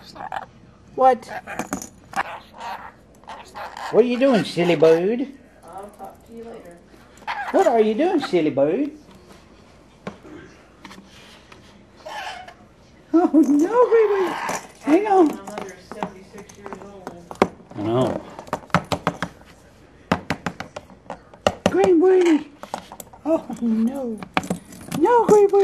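Claws and a beak tap on hard plastic.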